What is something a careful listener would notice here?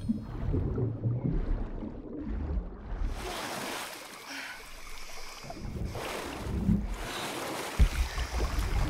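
Water splashes and swishes as a swimmer moves through it.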